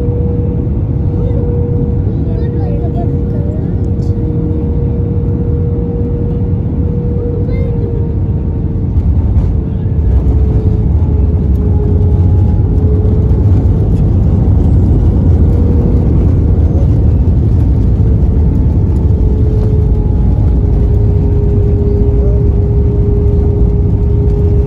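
A plane's wheels rumble over a runway.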